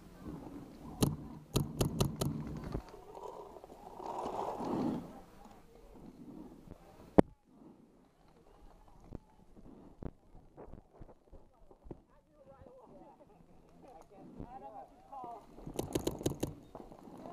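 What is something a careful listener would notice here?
A paintball marker fires rapid bursts of shots close by.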